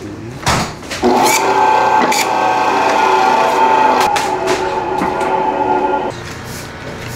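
A band saw whirs loudly as it cuts through meat and bone.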